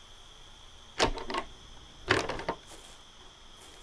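A heavy metal door rattles and bangs open.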